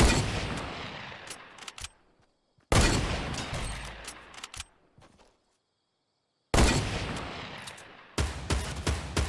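A sniper rifle fires loud shots, each echoing and slowly fading.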